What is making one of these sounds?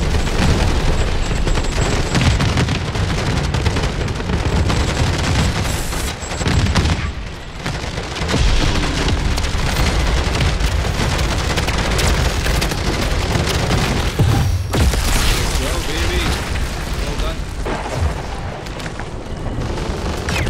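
Rapid gunfire rattles loudly in quick bursts.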